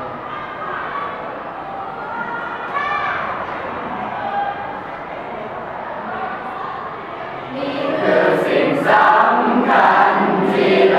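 A group of teenage boys and girls sings together in a choir, close by.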